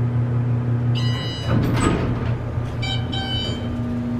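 A bell chimes as the lift arrives.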